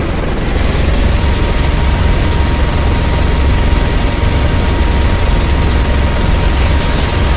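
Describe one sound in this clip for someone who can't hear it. Helicopter rotors thump loudly and steadily.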